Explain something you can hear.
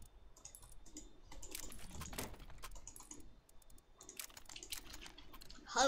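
Short clicks sound as items are picked from a menu.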